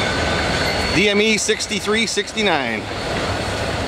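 A train horn blows in short and long blasts nearby.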